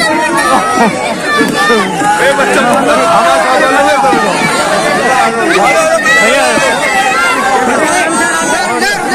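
A crowd of men chants and shouts loudly outdoors, close by.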